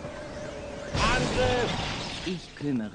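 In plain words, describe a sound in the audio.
A magic spell whooshes and chimes.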